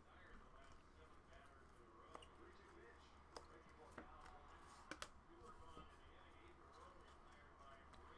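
Trading cards slide and flick against each other as they are shuffled.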